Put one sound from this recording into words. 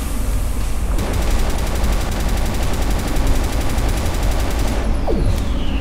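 A gun fires rapidly in a steady stream of shots.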